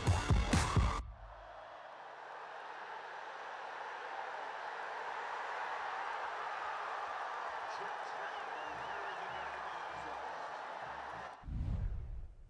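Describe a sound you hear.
A large stadium crowd roars.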